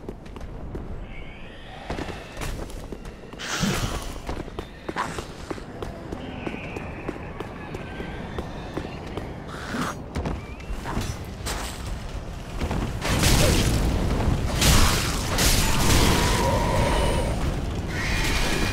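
Armoured footsteps clank on stone and wood.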